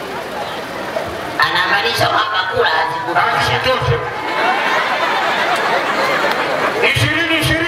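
A large crowd murmurs.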